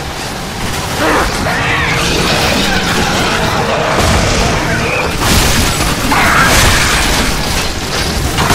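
Creatures growl and snarl.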